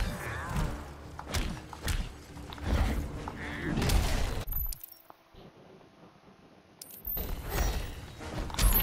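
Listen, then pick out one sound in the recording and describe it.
Heavy punches thud and smack in quick succession.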